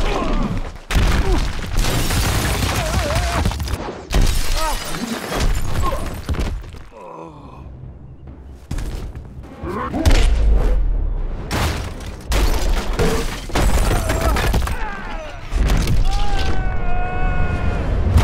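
Heavy blows land with loud, booming thuds.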